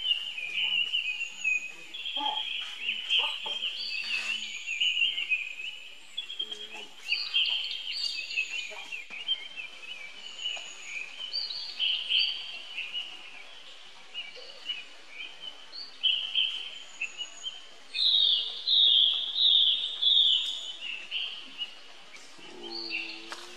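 A baby monkey squeals and cries shrilly, on and off.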